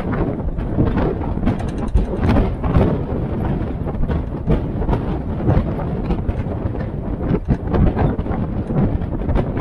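A military Jeep's engine rumbles as it drives along a paved road.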